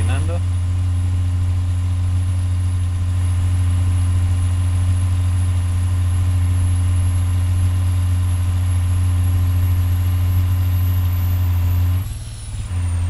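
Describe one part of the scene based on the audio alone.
A diesel semi-truck engine drones at cruising speed.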